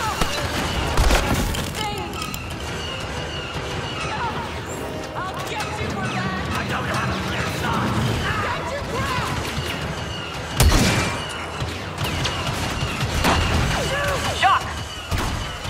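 Rifle shots crack sharply now and then.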